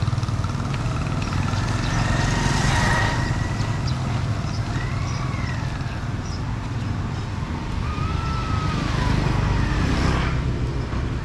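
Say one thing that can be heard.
Motor scooters ride past along a street.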